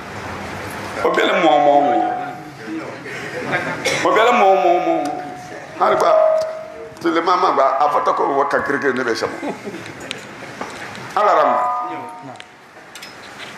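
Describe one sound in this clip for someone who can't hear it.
An elderly man chants loudly through a microphone in a reverberant hall.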